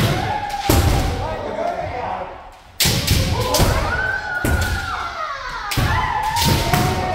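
Bamboo swords crack sharply against armour.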